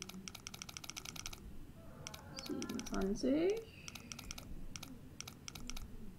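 A safe dial ticks rapidly as it turns.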